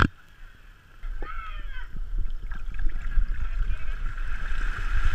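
Water rushes and splashes beneath a board gliding along.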